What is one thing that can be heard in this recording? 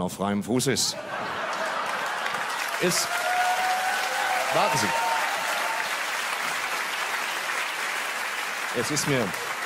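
An audience claps and cheers in a large hall.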